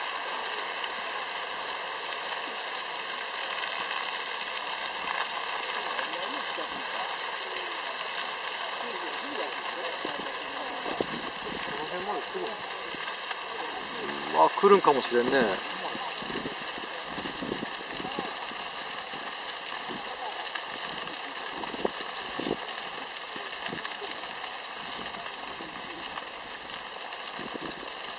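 A grass fire crackles and pops steadily outdoors.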